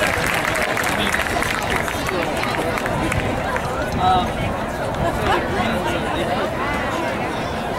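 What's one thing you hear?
A marching band plays brass and drums outdoors.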